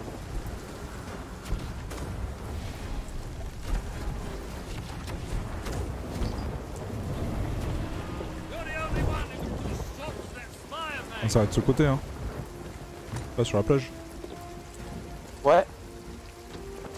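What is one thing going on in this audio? Stormy sea waves surge and crash.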